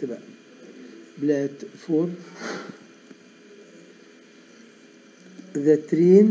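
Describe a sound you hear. A man speaks calmly and slowly close to a microphone, heard as through an online call.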